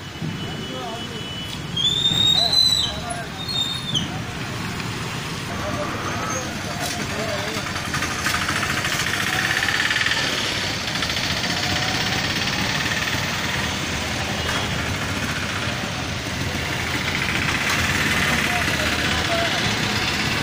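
A motorcycle engine idles nearby.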